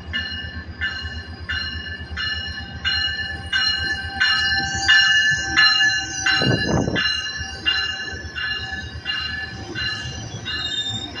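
A train rolls slowly along the track with a low rumble.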